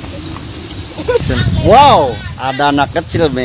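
A young man laughs and speaks with animation close by.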